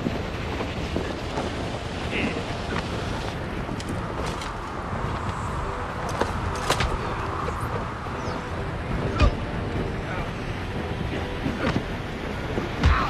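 Wind rushes loudly throughout.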